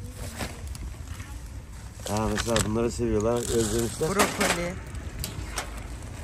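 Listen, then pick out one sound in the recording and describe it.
Plastic shopping bags rustle.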